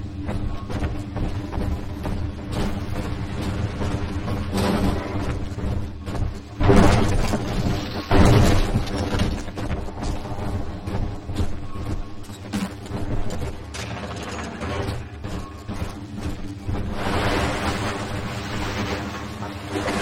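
Electricity crackles and buzzes close by.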